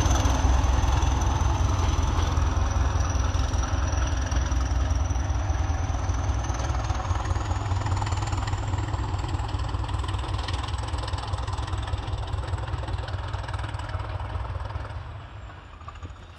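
A diesel train engine rumbles loudly as the train pulls away and fades into the distance.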